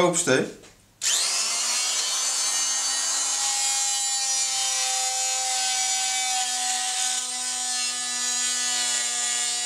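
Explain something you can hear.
An electric drill whirs steadily at high speed.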